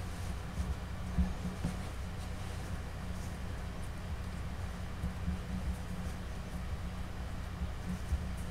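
Hands squeeze and rub a lump of soft clay.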